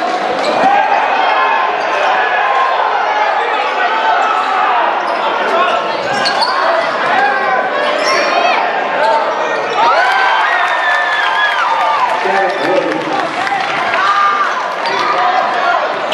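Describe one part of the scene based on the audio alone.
A crowd cheers and chatters loudly, echoing around a large hall.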